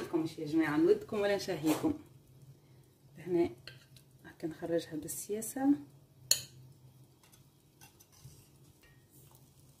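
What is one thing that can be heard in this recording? A metal spoon scrapes against a pot.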